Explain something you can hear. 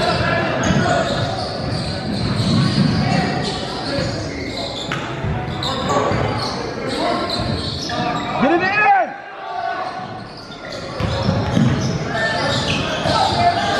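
Young players call out to each other from across the court.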